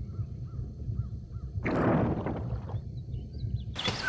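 Air bubbles gurgle underwater.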